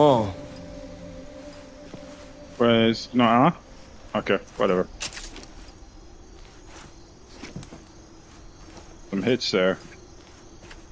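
Footsteps clank on metal stairs.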